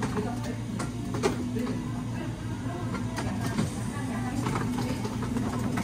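Thick smoothie slides out of a plastic blender jar into a cup.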